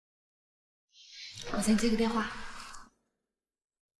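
A young woman speaks calmly and briefly, close by.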